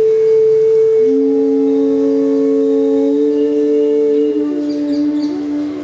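A bamboo flute plays long, held notes that slide between pitches.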